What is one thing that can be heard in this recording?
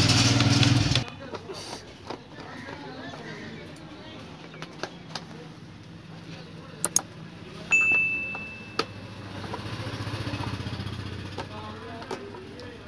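A screwdriver scrapes and clicks against hard plastic.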